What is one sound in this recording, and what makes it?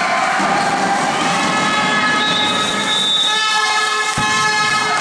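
Young women cheer and chatter excitedly in a large echoing hall.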